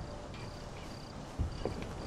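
Leafy branches rustle as someone pushes through them.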